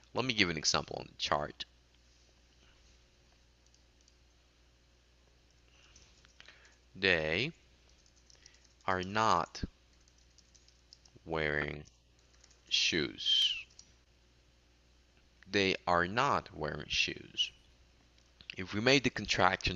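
A woman speaks calmly and clearly through an online call, with pauses between phrases.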